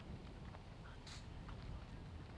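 A horse's hooves brush through a hedge as it jumps.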